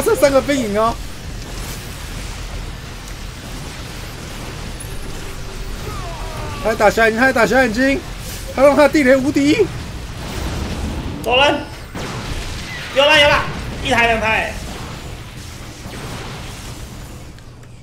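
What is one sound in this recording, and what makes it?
Sci-fi laser weapons zap and crackle in a battle.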